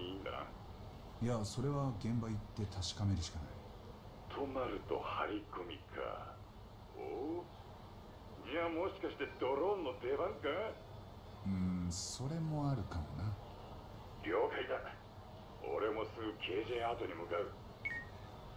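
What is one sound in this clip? A man talks calmly over a phone call.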